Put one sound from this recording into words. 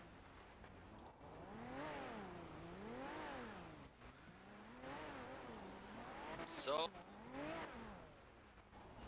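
Car engines rev up and down, whining.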